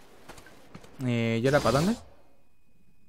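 A video game menu opens with a rising, swooshing electronic tone.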